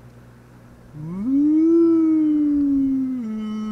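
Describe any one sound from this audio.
An animal lets out a loud, drawn-out cry close by.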